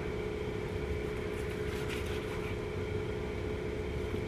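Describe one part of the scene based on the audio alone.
A knife slices through ham on a cutting board.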